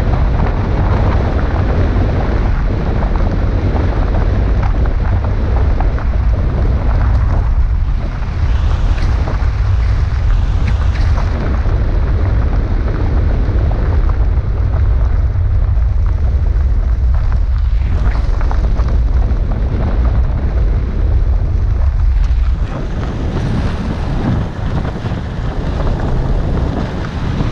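Tyres crunch and rumble on a gravel road.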